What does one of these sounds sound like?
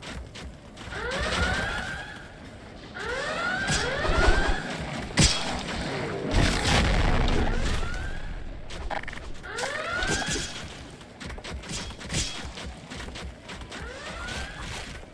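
Giant monsters let out rising and falling wailing screeches.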